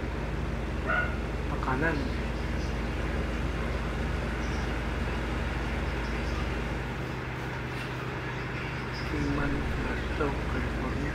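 A truck engine drones steadily while driving on a highway.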